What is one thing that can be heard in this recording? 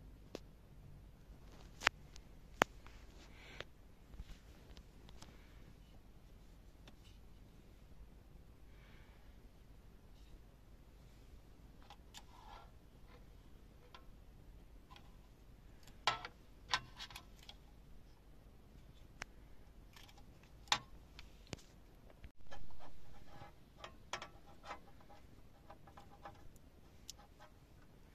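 Plastic cables and connectors click and rustle as they are handled.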